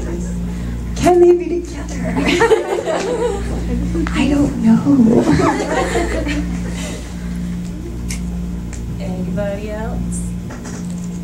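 A young woman speaks with animation through a microphone and loudspeakers.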